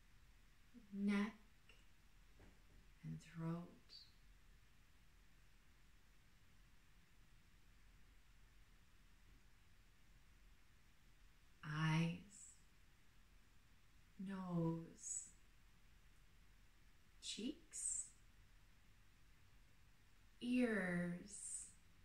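A woman speaks slowly and calmly, with long pauses, close to a microphone.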